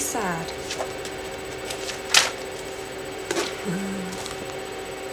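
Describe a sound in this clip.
A young woman speaks briefly, close to the microphone.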